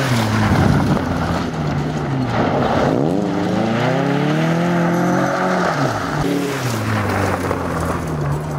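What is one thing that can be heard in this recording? Gravel crunches and sprays under spinning tyres.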